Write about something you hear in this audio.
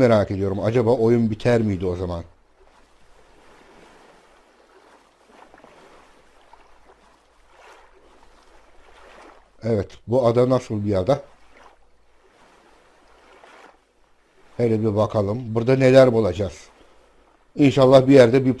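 A paddle splashes softly through water.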